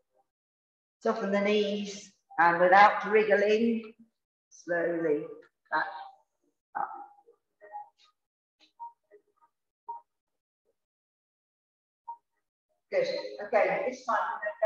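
A woman speaks calmly, giving instructions close to a microphone.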